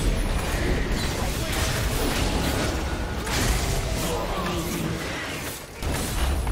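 Magic blasts crackle and boom in a video game fight.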